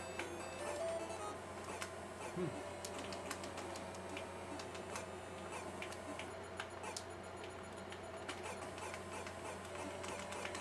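Retro video game sound effects beep and blip.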